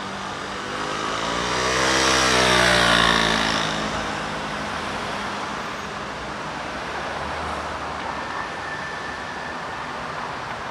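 Cars pass by steadily on a street outdoors.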